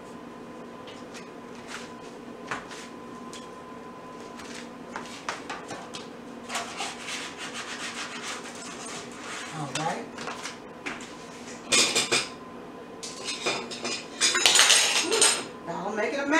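Utensils clink and scrape against a metal baking tray.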